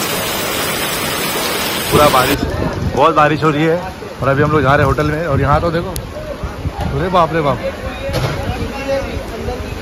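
Rainwater splashes and flows over wet pavement.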